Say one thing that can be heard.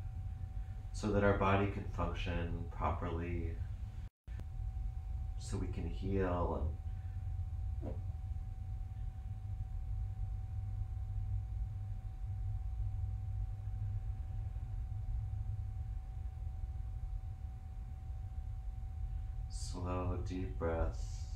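A man speaks calmly and softly close by.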